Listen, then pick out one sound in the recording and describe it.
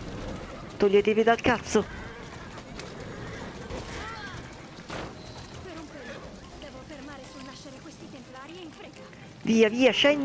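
A horse-drawn cart rumbles along a road.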